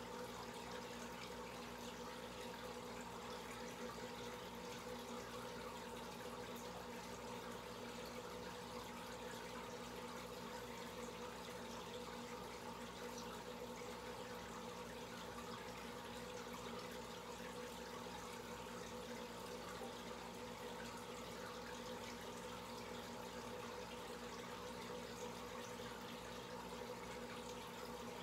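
An aquarium filter hums steadily.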